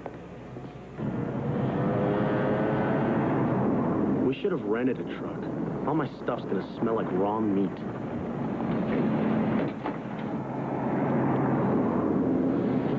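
A vehicle engine hums steadily outdoors.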